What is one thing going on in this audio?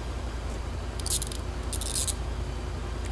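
Handcuffs ratchet shut with quick metallic clicks.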